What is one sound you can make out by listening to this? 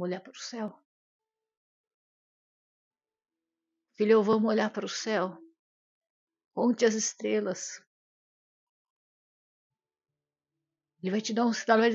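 A woman speaks calmly and close up, with long pauses.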